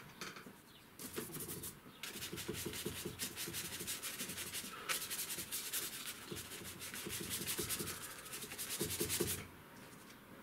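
A stiff paintbrush scrubs rapidly across paper.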